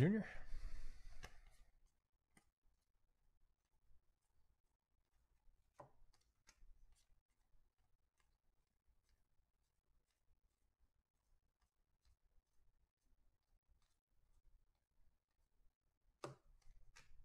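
Trading cards softly flick and rustle as they are shuffled by hand.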